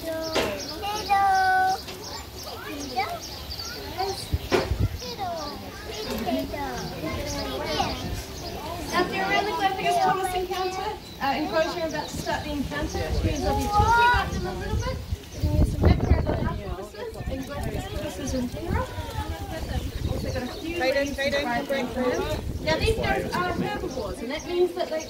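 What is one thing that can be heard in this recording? Young children chatter and call out excitedly.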